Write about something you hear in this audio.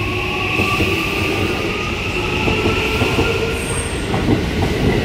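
Train wheels or motors whine with a rising pitch.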